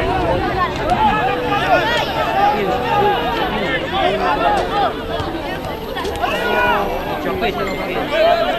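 Young men shout to each other.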